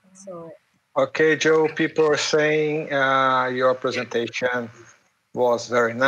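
A man speaks with animation, close to the microphone, over an online call.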